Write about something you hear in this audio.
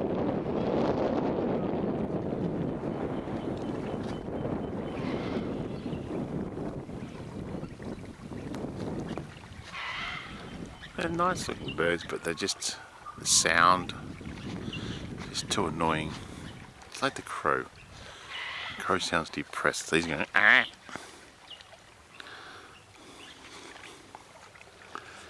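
Small waves lap gently on open water.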